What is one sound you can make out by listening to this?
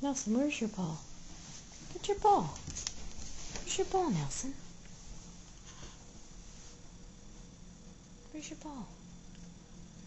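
A cat meows several times nearby.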